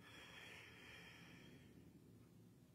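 Harp strings ring softly and fade away.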